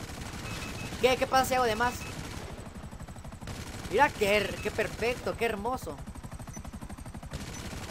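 A helicopter's rotor chops steadily close by.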